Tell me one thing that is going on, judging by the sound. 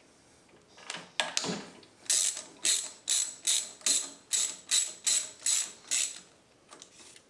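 A ratchet clicks rapidly as a bolt is turned.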